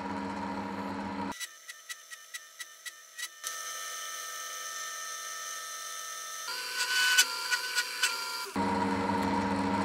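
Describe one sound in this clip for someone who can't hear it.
A metal lathe hums steadily as it spins.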